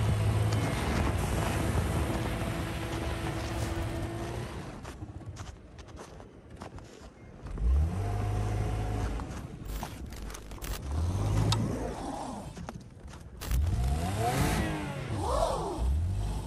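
Tyres crunch and churn through packed snow.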